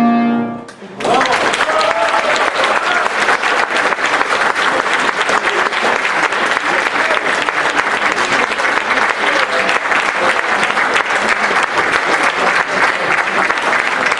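An audience applauds steadily in a hall.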